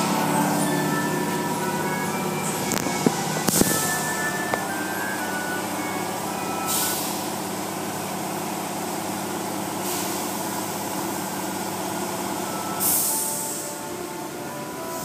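Car wash machinery hums steadily.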